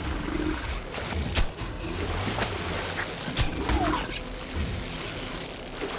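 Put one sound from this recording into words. A bow twangs as arrows are shot.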